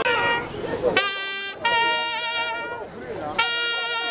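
A trumpet plays a slow tune.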